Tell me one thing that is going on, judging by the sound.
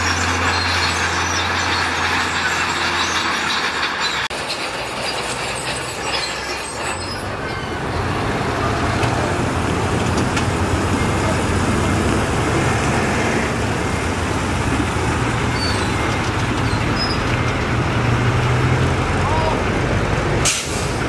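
A bulldozer blade scrapes and pushes gravel.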